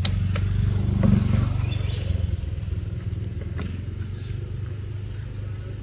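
A plastic bottle crinkles in a monkey's hands.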